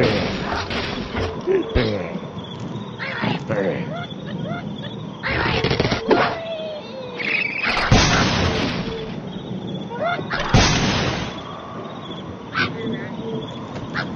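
A slingshot twangs as a bird is launched.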